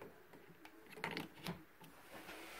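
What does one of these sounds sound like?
A plug clicks into a wall socket.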